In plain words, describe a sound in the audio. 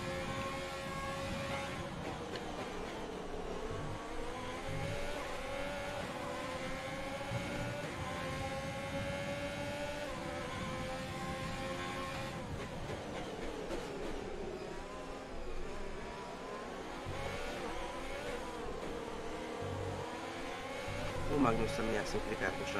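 A racing car engine roars at high revs, its pitch climbing and dropping with each gear change.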